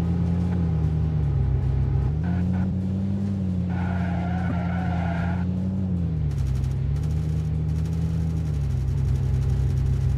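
A car engine hums steadily, rising and falling in pitch.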